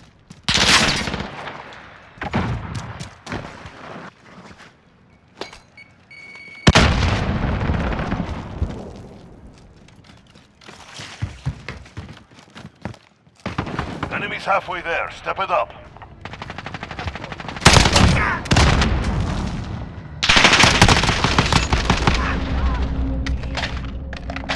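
Gunshots fire in bursts with loud echoing cracks.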